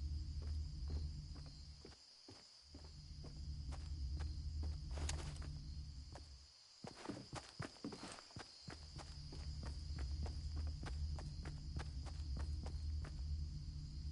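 Footsteps patter quickly on wooden planks.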